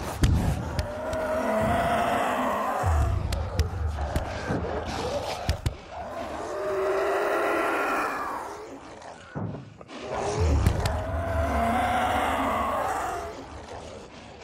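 A creature growls and groans in long rising moans.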